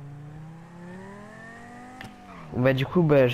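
A car engine revs and rises in pitch.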